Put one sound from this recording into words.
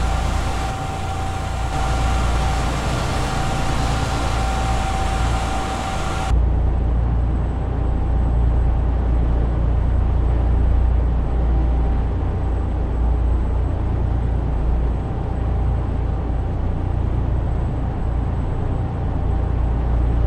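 A truck engine rumbles low and steady as it drives along a highway.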